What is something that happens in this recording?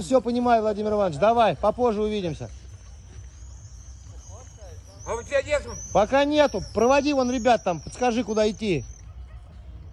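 An elderly man speaks loudly and with animation close by.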